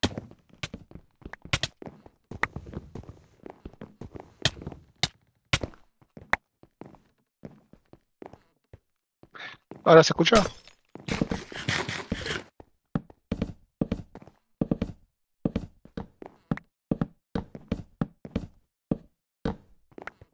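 Game blocks click and thump as they are placed one after another.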